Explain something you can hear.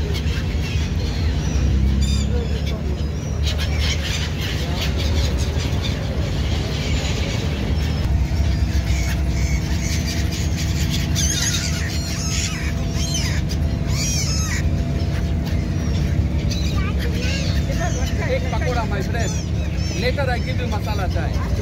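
Gulls call and squeal overhead.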